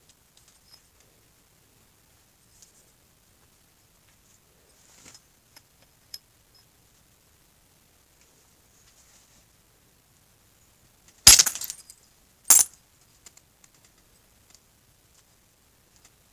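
A knife scrapes and shaves wood quietly.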